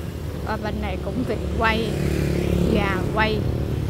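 A motor scooter passes close by.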